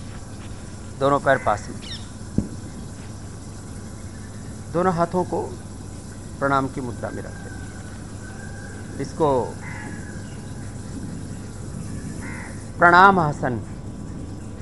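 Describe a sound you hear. A man speaks calmly in short phrases through a microphone.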